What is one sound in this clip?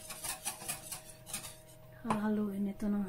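A grinder grinds pepper with quick clicks.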